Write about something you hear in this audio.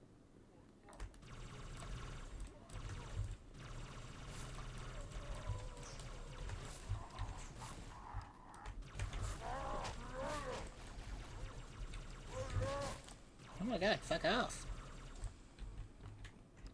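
Alien guns fire rapid bursts of energy shots.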